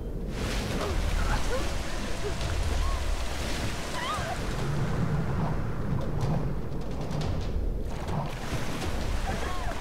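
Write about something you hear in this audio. Water splashes and churns around a swimmer.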